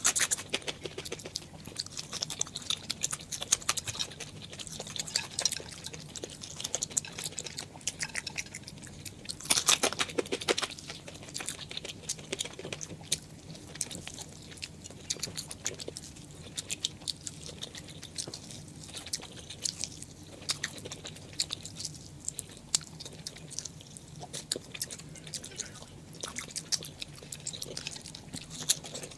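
A woman chews crunchy food close to a microphone.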